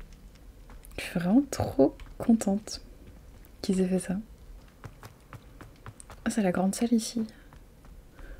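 A young woman talks casually into a close microphone.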